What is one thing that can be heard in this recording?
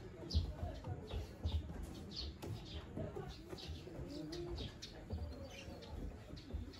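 Bare feet thump on a wooden ladder.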